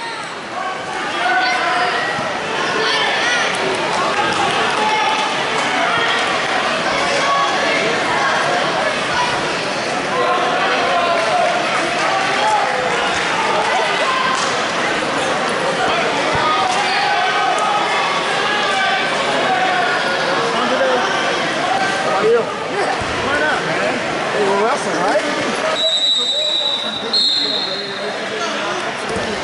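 Wrestlers' feet thump and squeak on a mat.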